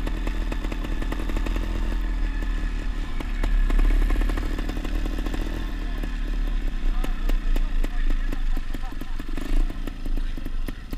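A dirt bike engine revs and drones up close, rising and falling.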